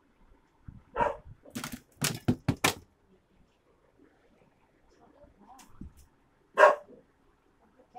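A dog barks sharply nearby.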